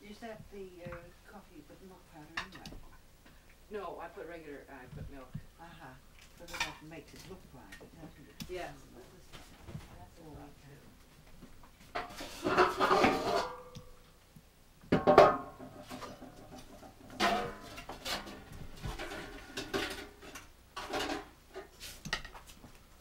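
Adults talk calmly nearby.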